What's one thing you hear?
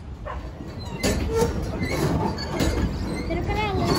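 Children talk and laugh nearby.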